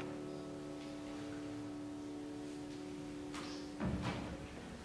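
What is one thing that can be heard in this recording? A piano's last chord rings and dies away.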